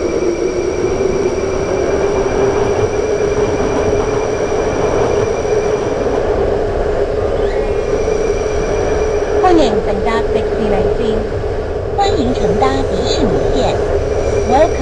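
A train rumbles steadily along the track with a loud, even drone.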